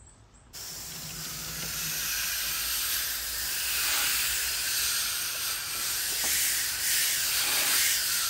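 Water sprays hard from a garden hose onto a metal grille.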